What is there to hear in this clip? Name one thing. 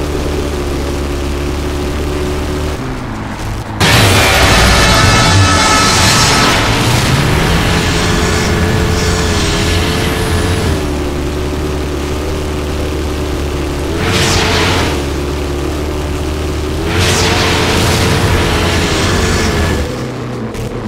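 A buggy engine drones and revs steadily.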